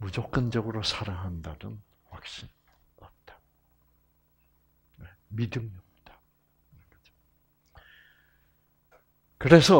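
An elderly man speaks calmly in short bursts.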